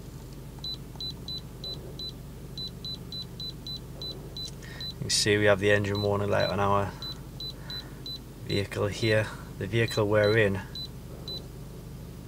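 A handheld device beeps softly with each button press, in quick short pips.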